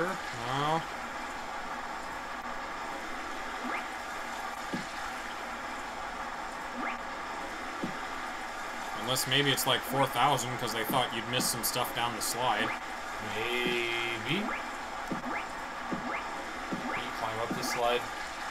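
Water pours steadily from a pipe into a pool.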